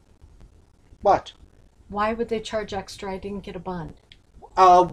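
An older woman speaks with animation close by.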